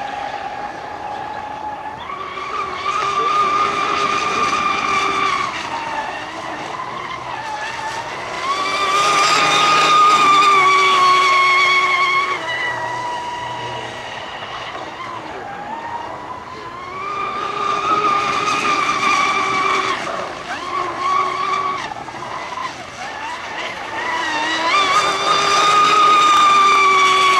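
A model speedboat's small engine whines at high pitch, rising and falling as it laps close by and far off.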